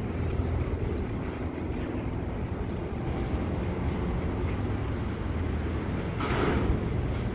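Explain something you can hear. A freight train rumbles steadily past nearby.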